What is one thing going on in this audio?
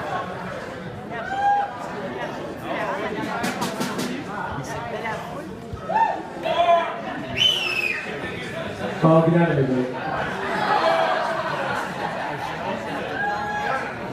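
A middle-aged man talks into a microphone.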